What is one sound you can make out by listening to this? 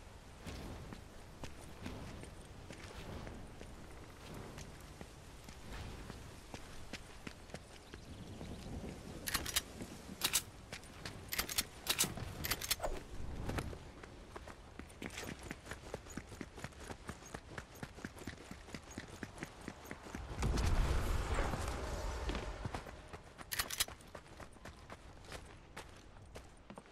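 Footsteps patter quickly on a roof and on the ground.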